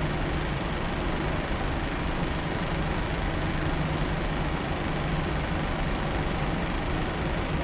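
Jet engines hum and roar steadily as an airliner rolls along a runway.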